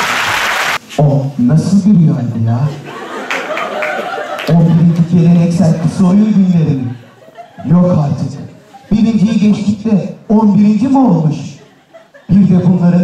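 A man speaks steadily through a microphone in a large echoing hall.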